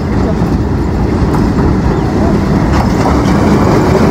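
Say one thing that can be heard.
A diesel locomotive rumbles loudly as it pulls in close by.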